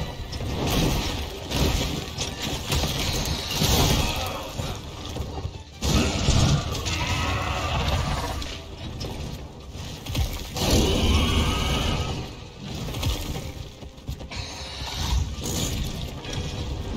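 A large creature's wings beat and whoosh heavily.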